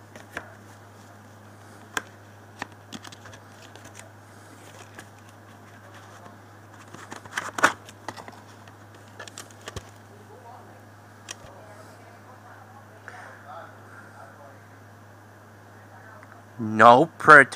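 A plastic case clicks and rattles as it is handled close by.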